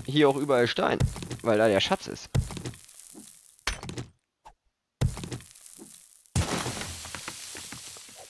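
A stone axe strikes rock with a dull knock.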